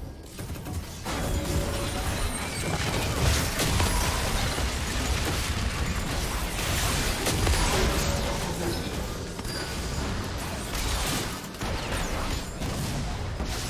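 Magic blasts and weapon clashes crackle and boom in a busy fight.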